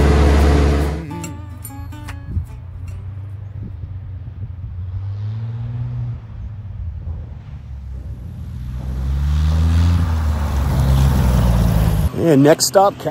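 A small plane's engine hums, rising and falling as the plane approaches and lands.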